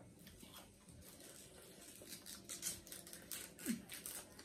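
Fingers pull apart soft food with quick crackling clicks.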